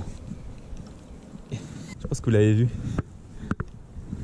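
A fishing reel clicks and whirs as its handle is turned.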